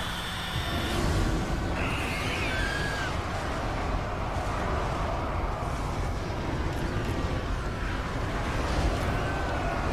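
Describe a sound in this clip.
Fire bursts and roars.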